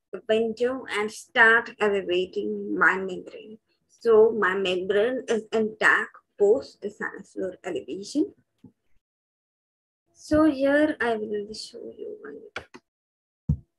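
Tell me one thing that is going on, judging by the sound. A young woman speaks calmly, heard through an online call.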